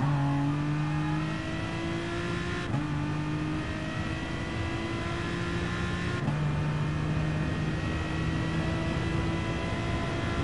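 A racing car engine roars, climbing in pitch as it accelerates and dropping briefly at each gear change.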